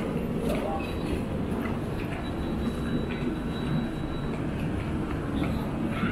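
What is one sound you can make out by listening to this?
Suitcase wheels roll across a hard floor.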